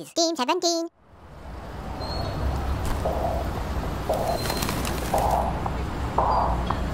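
Rain patters steadily on wet pavement outdoors.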